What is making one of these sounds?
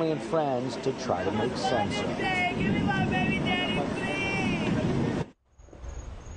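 A young woman shouts and wails in distress nearby.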